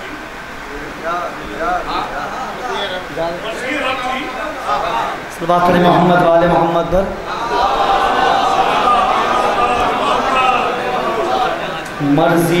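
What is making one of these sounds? A young man recites with feeling into a microphone, heard through loudspeakers.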